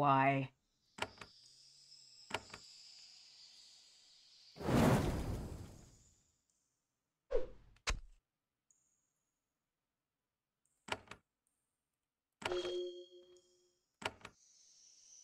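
Game interface clicks sound as menus open.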